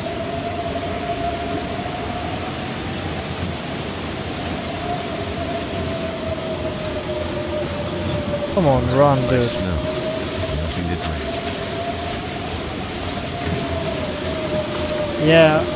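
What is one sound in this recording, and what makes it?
Wind blows steadily in a snowstorm.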